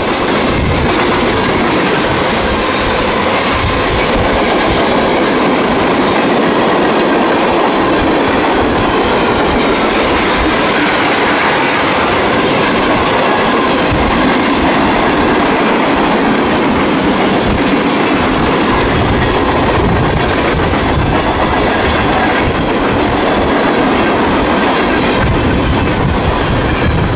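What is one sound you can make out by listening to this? A railway crossing bell rings steadily.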